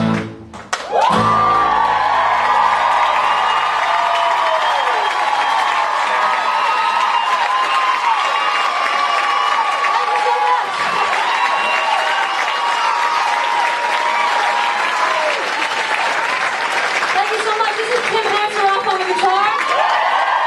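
A crowd cheers and whistles loudly in an echoing room.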